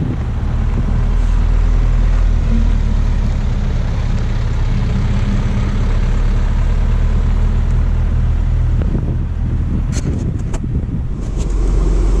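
A motorhome engine rumbles as the vehicle drives past outdoors.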